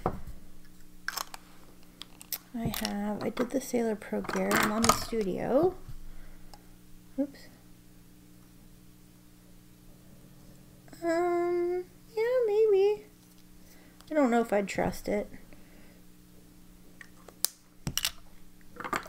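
Pen caps click and snap against pen barrels.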